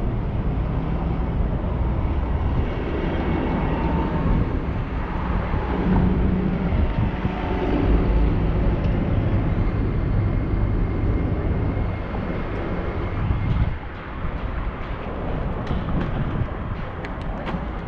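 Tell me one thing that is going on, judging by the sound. Wind rumbles and buffets against a microphone on a moving bicycle.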